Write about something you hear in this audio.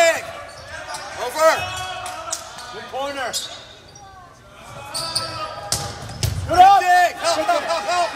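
A volleyball is struck with hollow thumps.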